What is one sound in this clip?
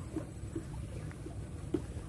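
Water pours from a bucket and splashes.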